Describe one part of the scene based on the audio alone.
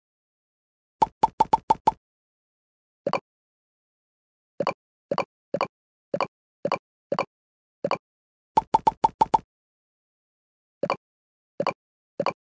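Short game pops sound as balls are tapped and merged.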